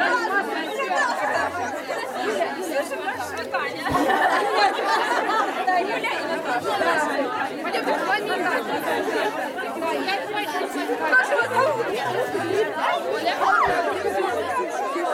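A group of women and girls chatter and laugh together outdoors.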